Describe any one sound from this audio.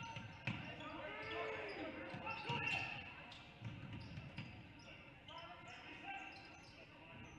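Basketball shoes squeak sharply on a hardwood court.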